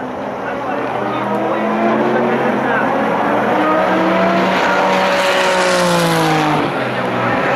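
Another race car engine whines loudly as it approaches and passes.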